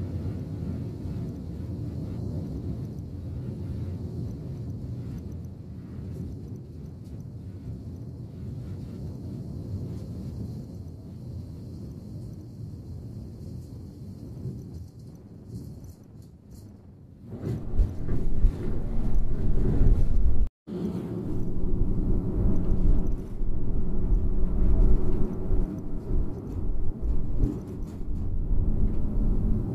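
A vehicle's engine hums steadily.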